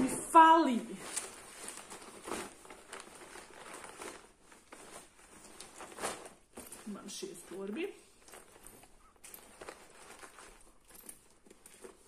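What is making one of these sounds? Fabric rustles as a bag is rummaged through.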